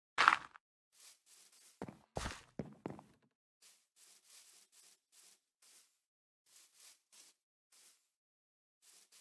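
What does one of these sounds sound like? Footsteps thud softly on grass and dirt at a steady pace.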